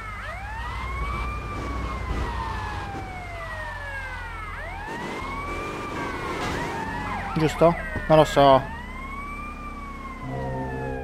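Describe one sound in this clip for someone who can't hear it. A police siren wails, rising and falling over and over.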